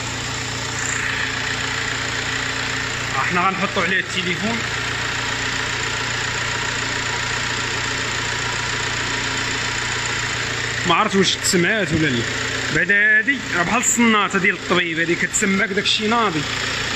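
A car engine idles with a steady hum.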